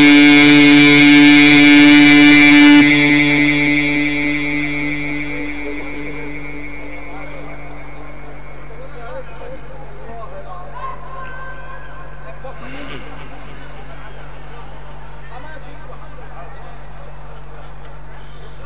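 A man sings through a microphone, holding a long loud note that slowly fades.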